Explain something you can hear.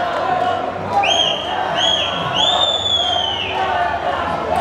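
A referee's whistle blows three sharp blasts.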